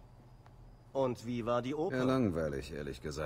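A man asks a question calmly.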